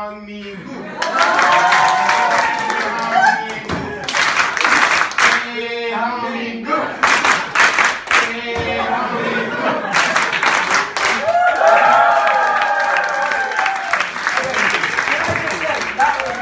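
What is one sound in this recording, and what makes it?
A crowd of young women screams and cheers loudly.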